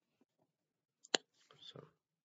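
A hand brushes against a microphone with a sharp bump.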